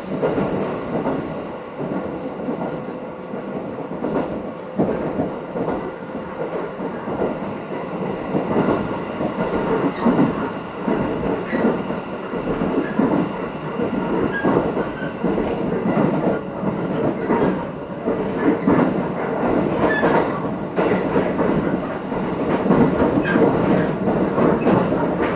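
Wind rushes in through open train windows.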